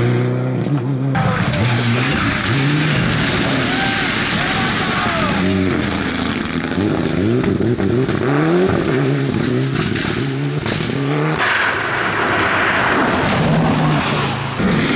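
Tyres crunch over wet gravel.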